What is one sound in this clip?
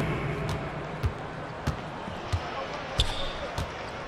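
A basketball bounces on a hard court at a steady pace.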